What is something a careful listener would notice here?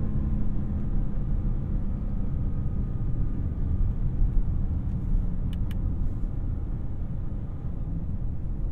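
Tyres roll on asphalt with a low rumble, heard from inside the cabin.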